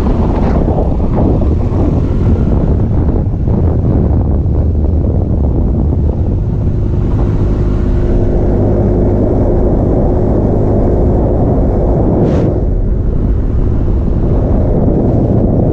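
Wind rushes loudly past the vehicle.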